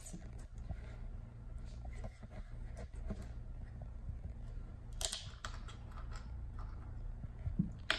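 A plastic bottle cap is twisted with creaking clicks.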